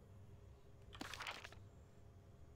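A short whoosh sounds as a map opens.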